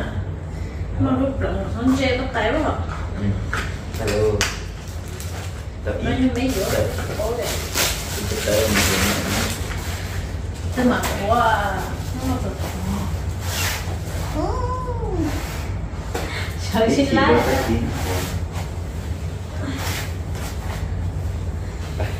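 Clothes rustle in a plastic laundry basket.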